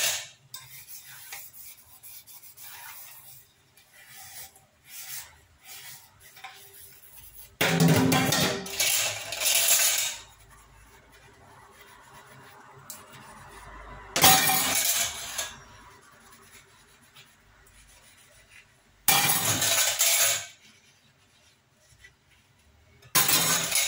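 Metal dishes clink and scrape in a steel sink.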